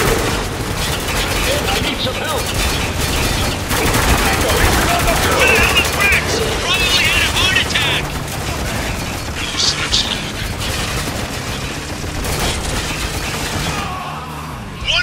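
Rapid gunfire rattles loudly and echoes in a large enclosed space.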